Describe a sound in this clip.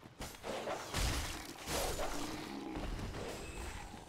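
Swords clash in a fight.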